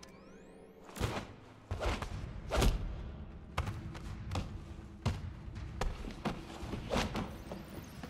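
Heavy blows and thuds land in a scuffle.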